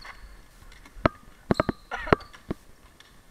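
Sneakers squeak sharply on a hard indoor floor.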